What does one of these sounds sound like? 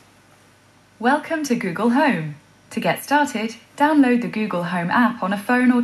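A smart speaker answers in a synthetic voice through its small loudspeaker.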